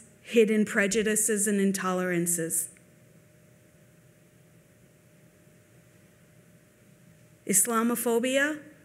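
A woman speaks calmly through a microphone, pausing between phrases.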